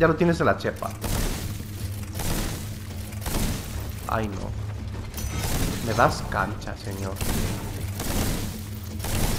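Weapons strike and clash in a fight.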